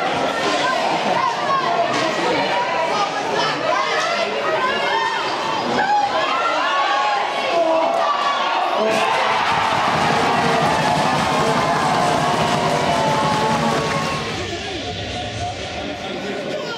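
Ice hockey skates scrape and carve on ice.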